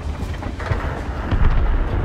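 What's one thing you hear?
A shell explodes with a heavy blast.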